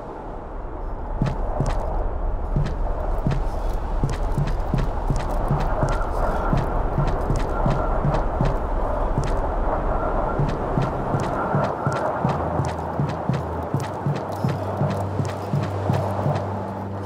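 Small footsteps tap steadily on hollow wooden boards.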